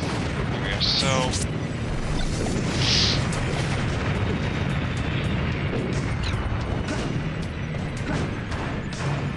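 Fighting game characters land quick punching and smashing hits.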